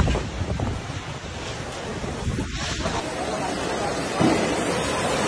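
Heavy rain pours down in strong wind.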